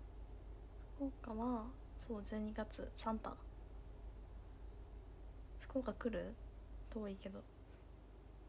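A young woman speaks softly and casually, close to the microphone.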